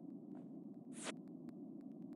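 A short electronic beep from a game sounds once.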